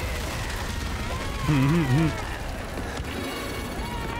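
A chainsaw engine revs and buzzes.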